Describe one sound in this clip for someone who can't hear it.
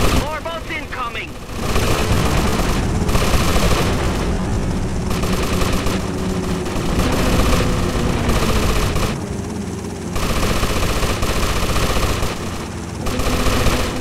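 A machine gun fires in bursts.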